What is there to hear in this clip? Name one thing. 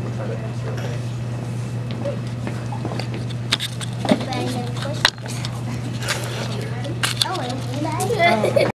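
Children talk and chatter nearby.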